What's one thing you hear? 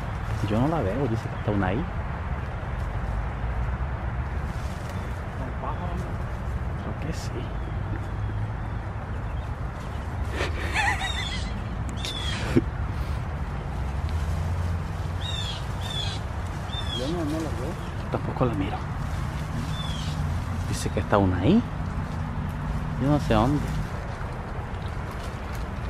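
Leaves and branches rustle as a man climbs through a tree.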